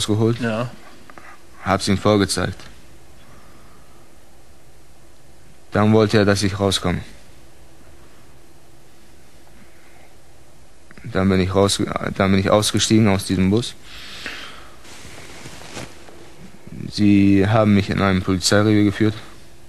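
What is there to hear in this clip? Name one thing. A man speaks calmly in a low voice, close to a microphone, with pauses.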